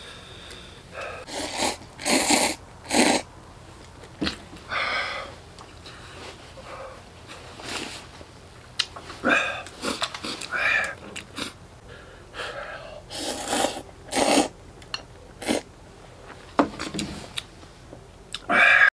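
A person slurps noodles loudly and repeatedly, close by.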